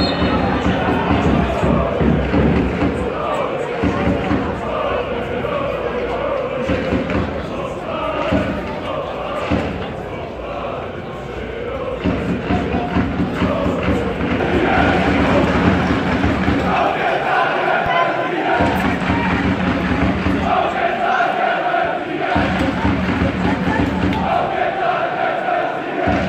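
A large crowd of fans chants and sings loudly in an open-air stadium.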